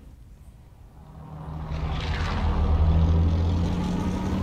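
A large propeller airplane drones steadily overhead.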